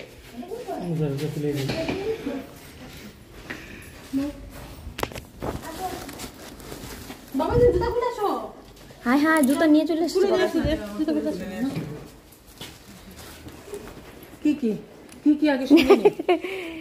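A woman talks nearby in a lively voice.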